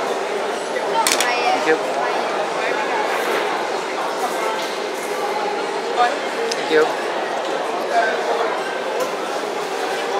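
A middle-aged woman talks close by.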